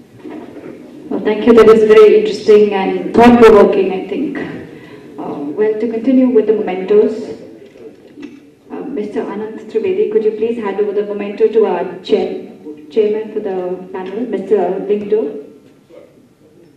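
A young woman speaks calmly into a microphone in an echoing hall.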